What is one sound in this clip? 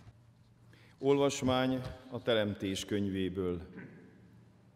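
A man chants in a sung voice through a microphone in a large echoing church.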